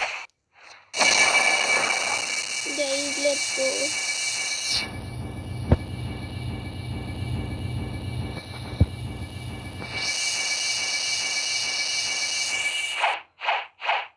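A loud energy blast roars and crackles.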